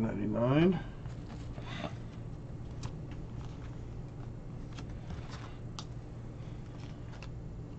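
Plastic card sleeves click and rustle in hands.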